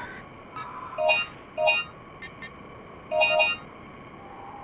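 Electronic menu beeps chirp in quick succession.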